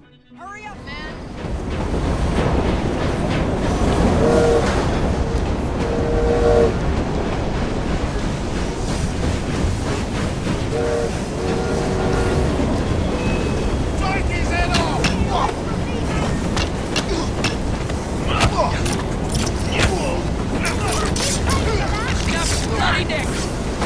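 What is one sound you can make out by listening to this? A steam train rumbles steadily along the tracks.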